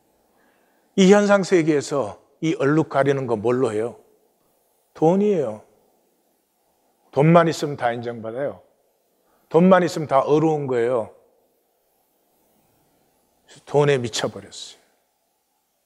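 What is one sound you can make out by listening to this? An elderly man preaches with slow, measured phrases through a microphone, pausing between them.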